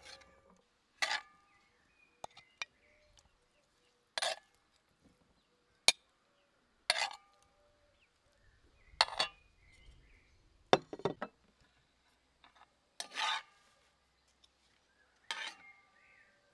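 A metal spoon clinks against a frying pan every few seconds.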